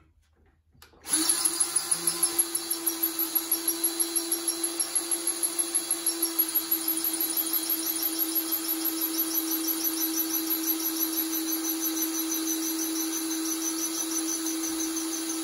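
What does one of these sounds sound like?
A power drill whirs steadily as it bores into metal.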